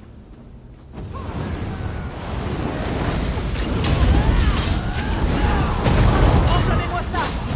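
Swords clash and magic blasts burst in a fierce game battle.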